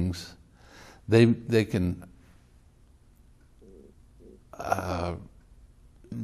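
An elderly man speaks calmly and thoughtfully into a close microphone, with pauses.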